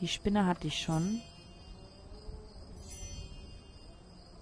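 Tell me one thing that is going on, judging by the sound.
A soft magical chime sparkles twice.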